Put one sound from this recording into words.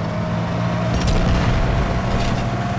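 Gunfire blasts nearby.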